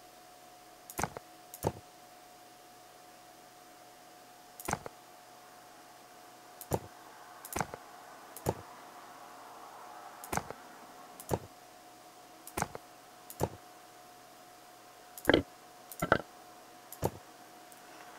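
Short game interface clicks sound one after another.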